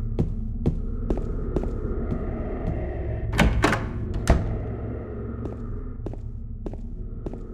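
Footsteps walk steadily across a hard floor.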